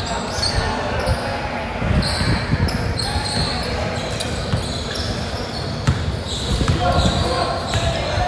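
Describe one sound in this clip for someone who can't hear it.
A basketball bounces repeatedly on the floor.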